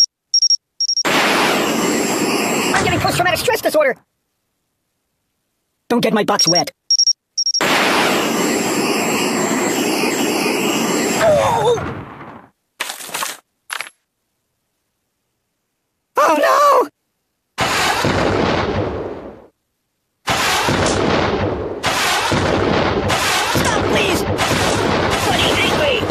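A rocket roars with a loud hiss as it flies.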